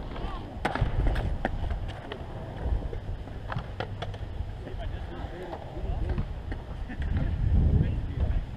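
Skateboard wheels roll and rumble on concrete.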